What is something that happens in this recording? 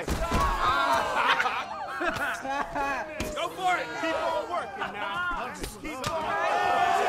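Gloved punches thud against bare skin.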